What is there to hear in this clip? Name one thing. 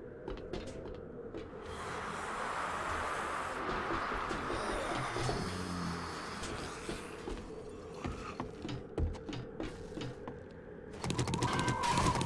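Footsteps clank on metal.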